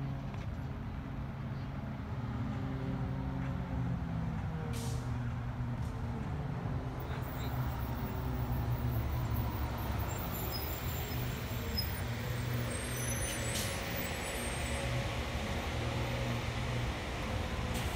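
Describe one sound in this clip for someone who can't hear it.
A bus engine rumbles steadily nearby.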